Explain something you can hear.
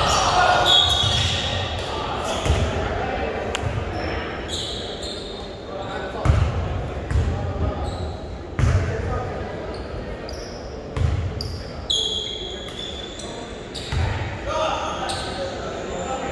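Sneakers squeak sharply on the gym floor.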